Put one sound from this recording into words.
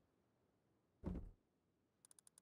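A wooden crate lid opens with a thud.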